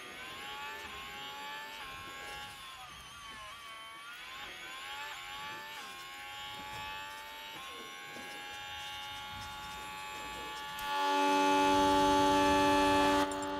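A racing car engine whines at high revs, rising and dropping with gear changes.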